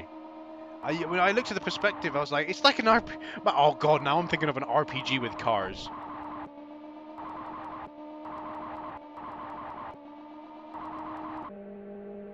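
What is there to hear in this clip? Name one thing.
A racing car engine hums steadily.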